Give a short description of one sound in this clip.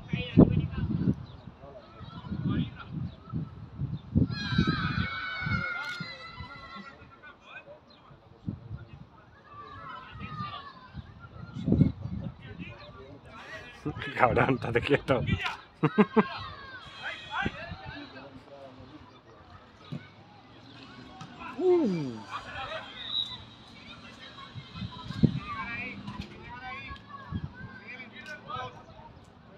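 Players shout to each other across an outdoor football pitch.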